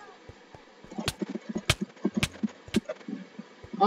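Sword blows strike with sharp hits.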